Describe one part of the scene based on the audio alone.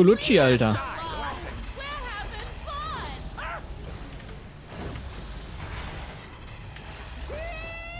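Game combat effects whoosh and blast.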